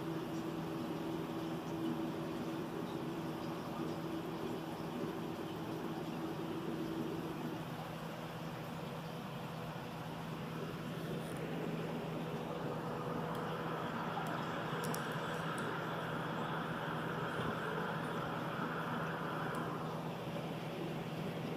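Air bubbles stream and fizz steadily underwater.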